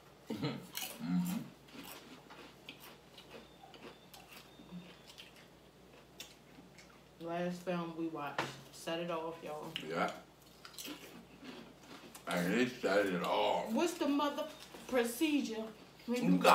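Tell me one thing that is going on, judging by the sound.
Crunchy chips crunch as they are eaten.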